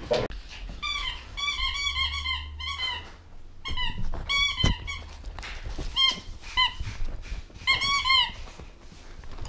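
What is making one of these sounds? A dog whines in short high cries.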